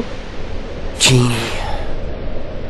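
A young man speaks briefly and hesitantly.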